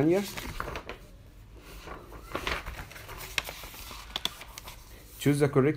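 Paper pages rustle and crinkle as they are turned.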